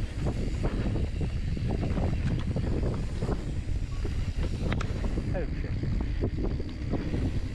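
Wind rushes loudly past as a bike speeds downhill.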